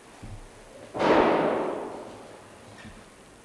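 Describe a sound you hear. A single gunshot bangs loudly and echoes off the walls.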